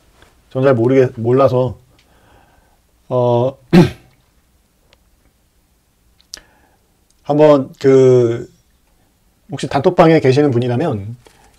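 A man speaks close to a microphone, in short calm phrases with pauses.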